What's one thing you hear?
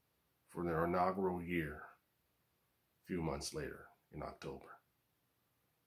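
A man speaks calmly and close up, in short phrases.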